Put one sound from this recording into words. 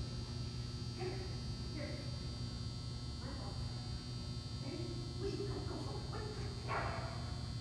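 An elderly woman calls out to a dog in a large echoing hall.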